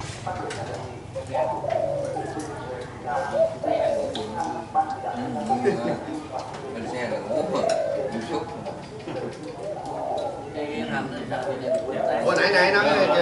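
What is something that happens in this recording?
Dishes and utensils clink softly.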